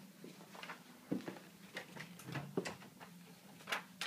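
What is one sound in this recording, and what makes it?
A door handle clicks and a door swings open.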